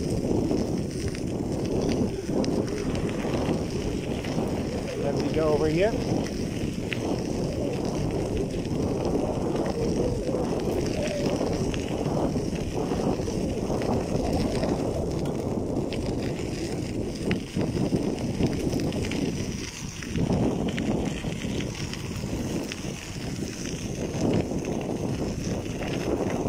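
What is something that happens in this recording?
Bicycle tyres crunch steadily over gravel.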